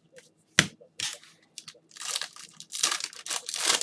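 Cards rustle and slide in gloved hands.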